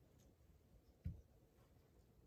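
A plastic cup knocks softly as it is set down on a table.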